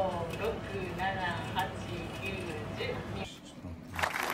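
Paper tickets rustle as they are handled and counted.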